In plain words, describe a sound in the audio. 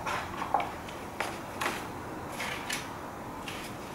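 Metal tools clink against each other.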